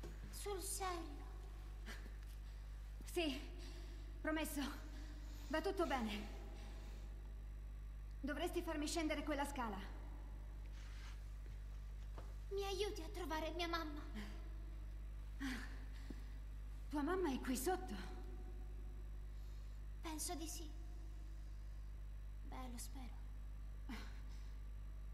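A young girl speaks softly and hesitantly, close by.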